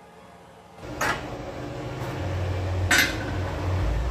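A steel rod clanks sharply against a metal bending jig.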